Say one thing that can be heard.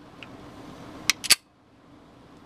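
A pistol slide is racked with a sharp metallic clack.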